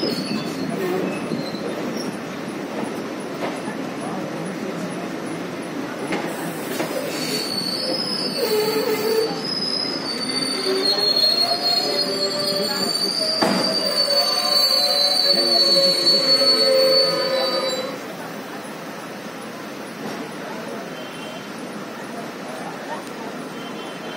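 A train rumbles steadily along its rails.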